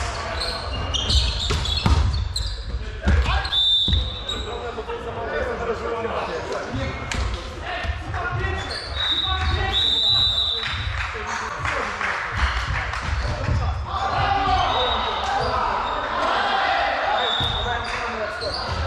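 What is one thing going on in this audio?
Shoes squeak sharply on a hard floor in a large echoing hall.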